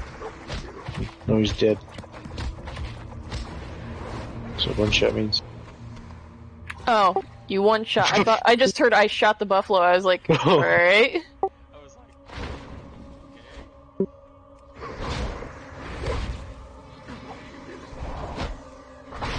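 Magic spells crackle and whoosh in short bursts.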